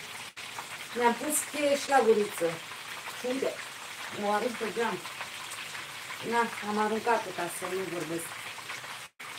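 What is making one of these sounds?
A woman speaks casually close by.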